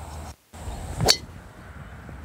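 A golf driver strikes a ball with a sharp crack.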